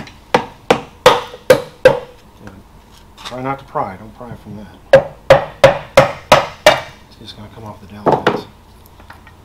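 A tool knocks sharply on metal in quick bursts.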